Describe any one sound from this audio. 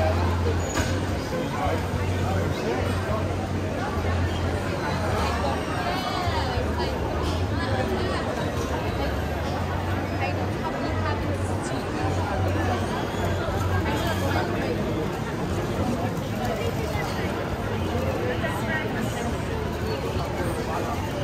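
A crowd chatters all around in a busy echoing hall.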